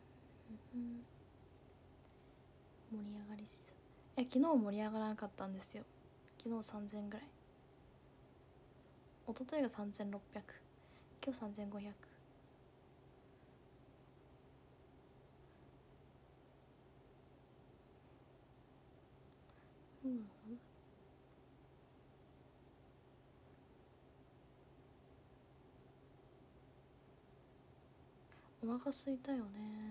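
A young woman speaks softly and close by, with pauses.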